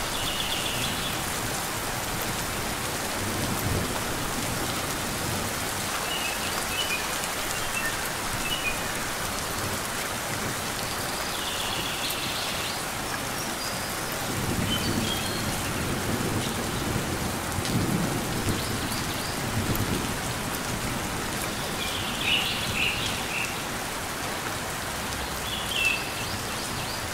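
Steady rain patters outdoors.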